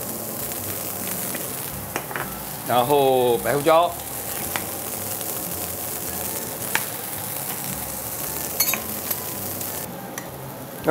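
Broth bubbles and simmers in a pan.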